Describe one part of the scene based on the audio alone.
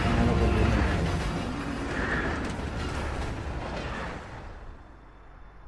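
An armoured train rumbles heavily along the tracks and then fades away.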